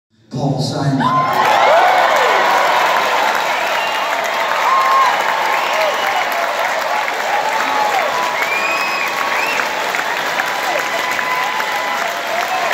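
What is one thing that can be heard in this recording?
Members of a crowd whoop and whistle.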